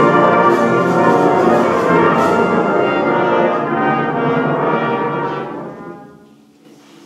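A brass band plays loudly in a large hall.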